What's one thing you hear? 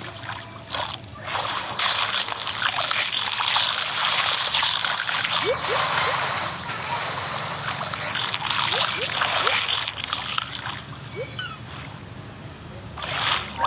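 Video game sound effects play as a shark crunches through prey.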